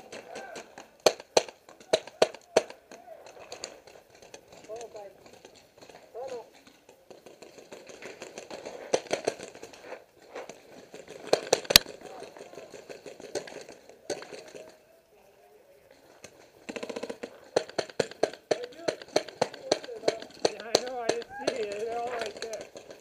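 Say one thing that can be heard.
Paintball markers fire in quick, sharp pops.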